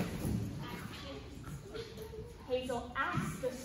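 A young child speaks loudly in an echoing hall.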